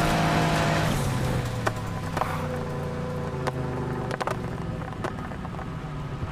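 A car engine drops to a lower rumble as the car slows down.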